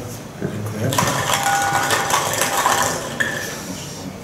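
Plastic balls rattle and clatter in a glass bowl.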